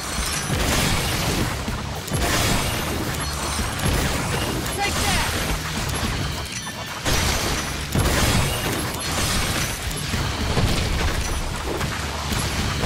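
A sword whooshes through the air in quick slashes.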